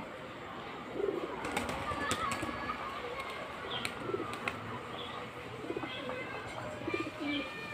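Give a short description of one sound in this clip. Pigeon wings flap and flutter close by.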